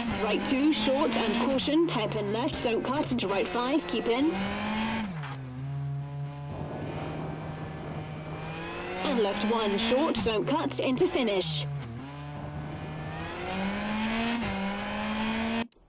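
Tyres crunch and skid over gravel.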